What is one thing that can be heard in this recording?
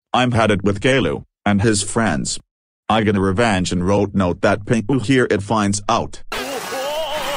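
A boy's computer-made voice speaks quickly and flatly.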